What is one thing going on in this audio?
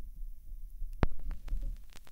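A needle drops onto a spinning record with a thump.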